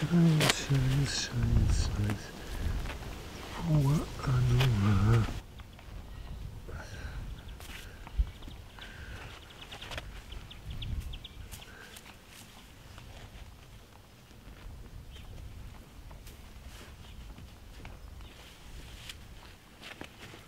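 Hands rustle through short grass and soil.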